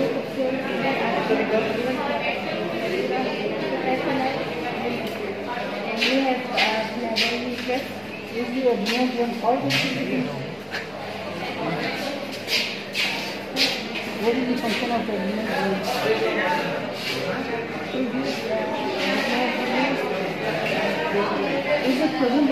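A young woman explains calmly, close by.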